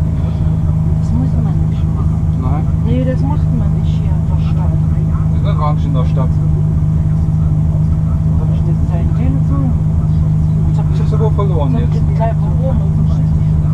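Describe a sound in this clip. A middle-aged woman talks nearby in a worried tone.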